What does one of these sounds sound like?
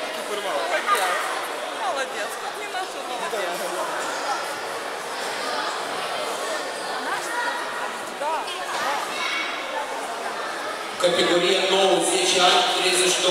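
A crowd of adults and children chatters in a large echoing hall.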